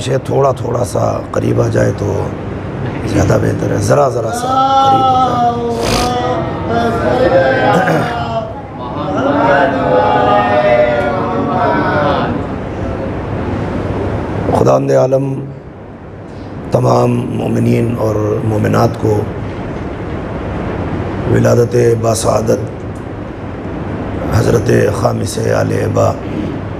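A middle-aged man speaks into a microphone, chanting and reciting with feeling over a loudspeaker.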